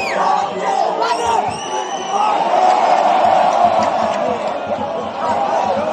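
A large stadium crowd sings and chants loudly all around.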